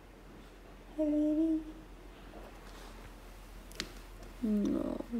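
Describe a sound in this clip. A small dog whines in short, high cries.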